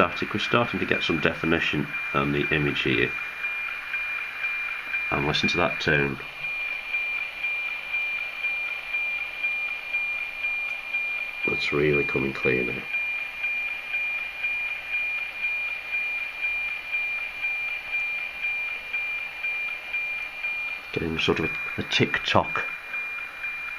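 A radio signal plays a steady, rhythmic ticking tone through a loudspeaker.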